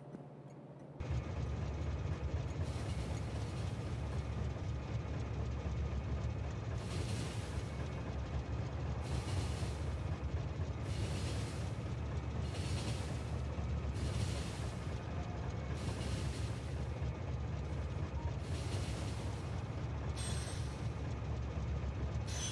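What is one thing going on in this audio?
A steam train engine chugs and rumbles steadily along a track.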